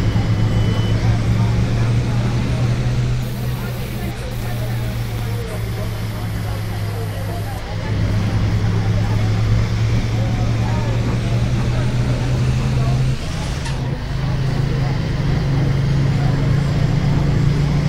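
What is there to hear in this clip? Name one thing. A bus engine hums steadily, its pitch shifting as the bus changes speed.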